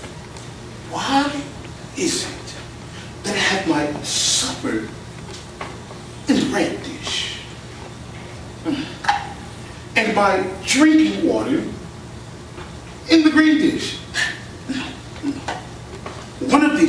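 A performer speaks with expression on a stage, heard from the audience.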